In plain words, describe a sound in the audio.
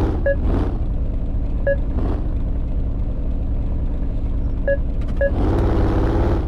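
A vehicle engine rumbles steadily at low speed.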